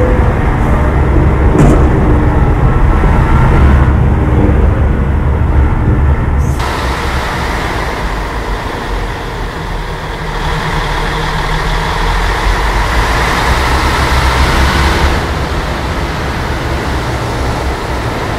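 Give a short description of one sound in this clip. Tyres crunch over a dirt road.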